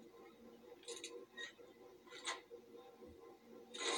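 A lock pick clicks and scrapes in a lock, heard through a television speaker.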